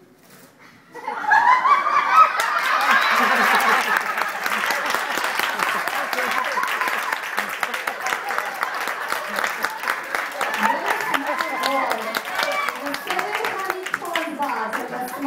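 Children shout and cheer loudly in a large echoing hall.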